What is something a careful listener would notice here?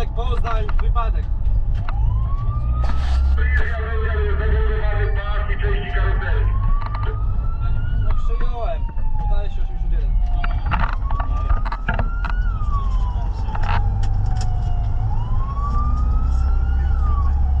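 A vehicle engine rumbles steadily from inside the cab.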